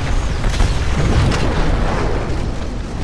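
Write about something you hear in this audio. An explosion booms loudly.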